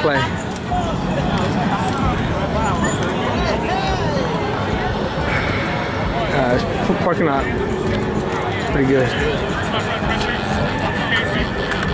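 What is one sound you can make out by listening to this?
Bicycles click and rattle as they are wheeled about.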